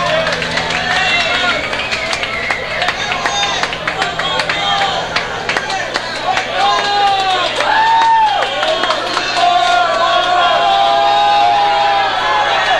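A man sings loudly through a microphone.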